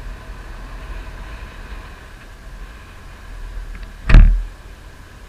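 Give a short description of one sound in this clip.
Wind rushes and buffets against the microphone.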